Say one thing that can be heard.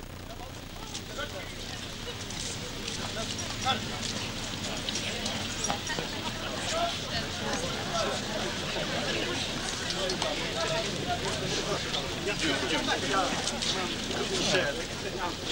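Footsteps crunch on gravel as a group marches past.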